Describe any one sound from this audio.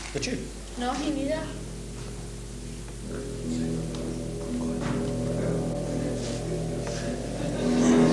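A guitar is strummed and played.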